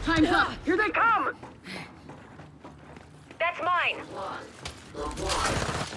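Footsteps run across a hard metal floor.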